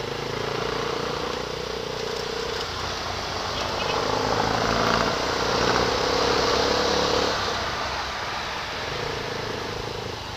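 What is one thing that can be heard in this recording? A motorcycle engine hums steadily, rising and falling slightly.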